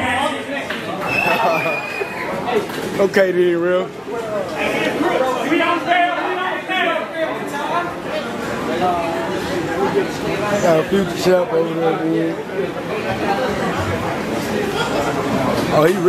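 A crowd cheers and shouts loudly in a room with echo.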